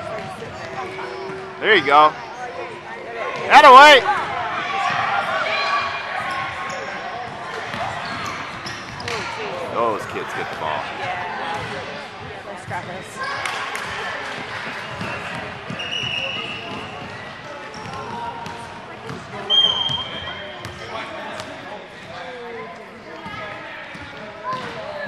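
Children and adults shout and chatter in a large echoing gym.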